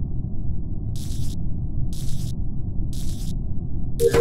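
Short clicks snap into place.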